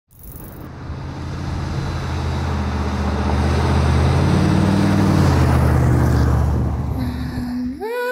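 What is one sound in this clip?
A car engine hums as a vehicle drives closer on a road.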